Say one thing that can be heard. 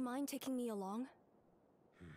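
A young woman speaks calmly and asks a question.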